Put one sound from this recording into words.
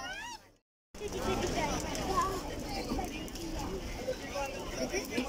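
A crowd of people murmurs in a busy market.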